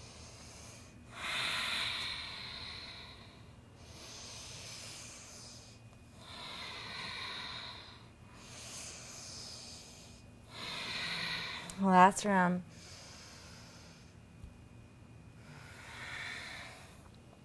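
A young woman breathes slowly and deeply in and out, close by.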